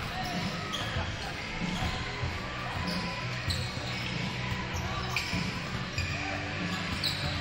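A large crowd chatters in a big echoing gym.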